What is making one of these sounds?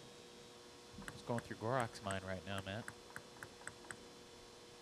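A table tennis ball bounces on a table several times.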